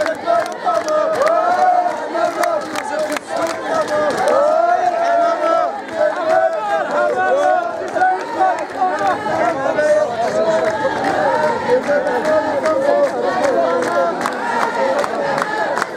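Hands clap among the crowd.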